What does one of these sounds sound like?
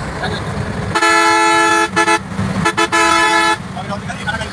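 A bus horn blares in loud bursts.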